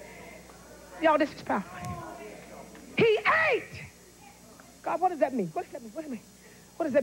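A woman speaks with emotion into a microphone, in short bursts.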